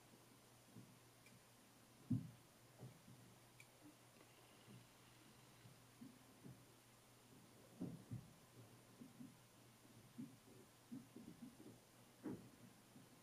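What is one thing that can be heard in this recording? A young man talks calmly, close to a microphone.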